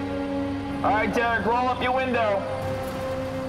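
A man shouts through a megaphone outdoors.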